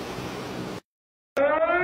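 Choppy water laps against the shore in the wind.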